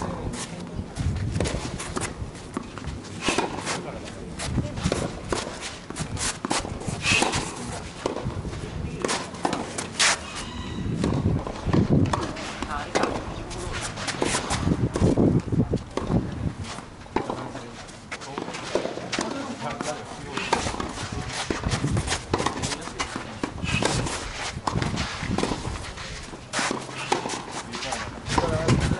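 A tennis ball is struck sharply by rackets, back and forth.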